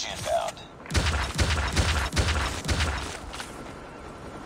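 Rapid gunfire rattles in a close, loud burst.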